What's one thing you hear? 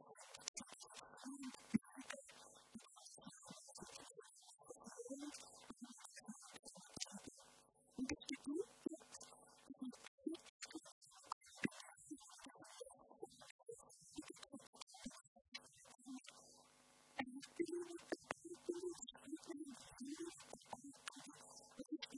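A woman speaks with animation through a handheld microphone.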